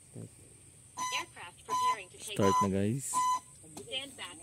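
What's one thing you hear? A remote controller beeps several times.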